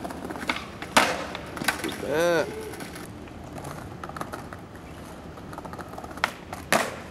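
A skateboard deck clacks sharply on the ground.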